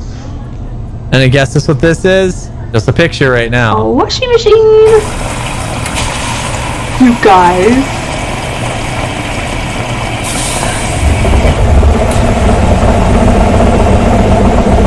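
Water gushes and fills a washing machine drum.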